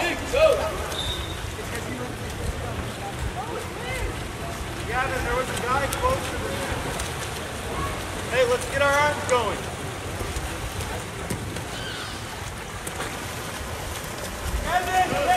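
Swimmers splash and churn water close by.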